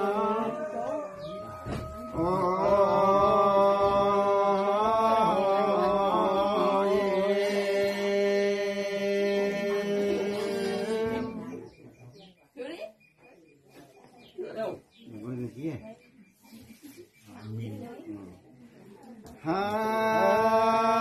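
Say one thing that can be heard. An elderly man chants in a long, drawn-out, wavering voice, breaking off for a while and then starting again.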